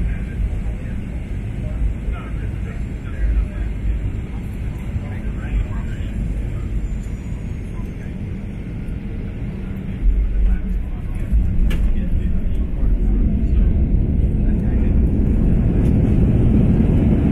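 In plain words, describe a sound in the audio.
A jet airliner's engines roar steadily as the plane speeds along the runway.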